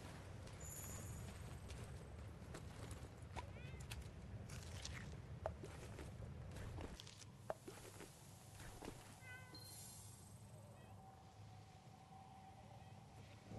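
A soft sparkling chime twinkles nearby.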